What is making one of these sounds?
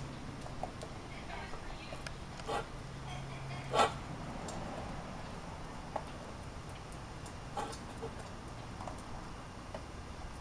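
A hen clucks in short bursts nearby.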